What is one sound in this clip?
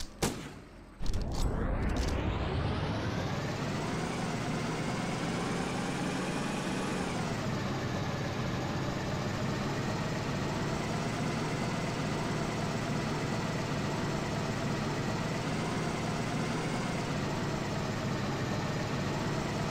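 A truck engine starts up and revs, then rumbles steadily as the truck drives.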